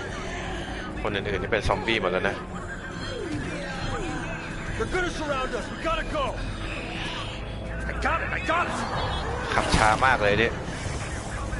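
A man talks excitedly into a close microphone.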